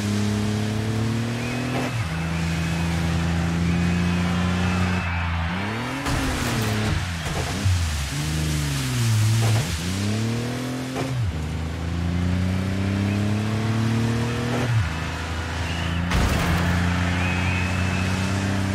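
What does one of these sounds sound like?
A racing car engine roars loudly, revving up and dropping as gears shift.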